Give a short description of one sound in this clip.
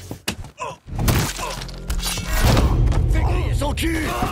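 Heavy blows thud as a man is struck in a fight.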